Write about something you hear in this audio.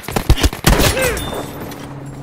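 Loud explosions and gunshots burst in quick succession.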